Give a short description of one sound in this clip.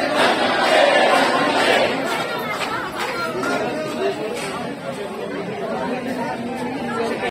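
A large crowd of men and women talks and shouts all at once nearby, outdoors.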